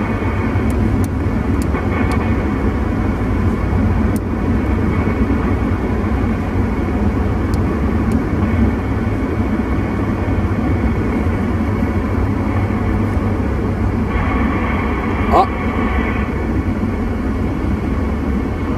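A CB radio hisses with static.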